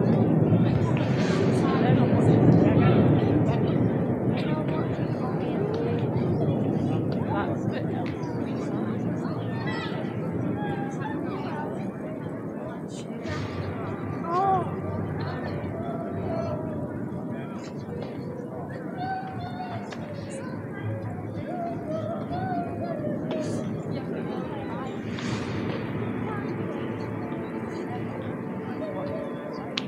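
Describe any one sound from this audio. A large crowd murmurs and chatters outdoors.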